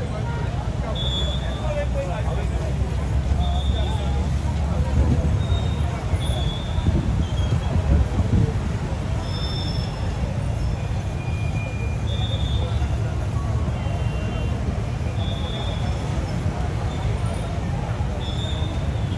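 Motorcycle engines idle nearby.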